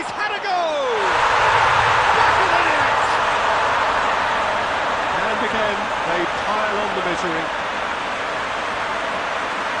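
A stadium crowd roars and cheers loudly.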